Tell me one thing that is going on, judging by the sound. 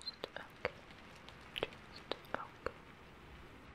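Fingernails click and tap softly close by.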